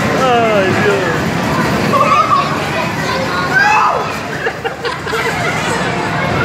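A crowd chatters and children shout nearby.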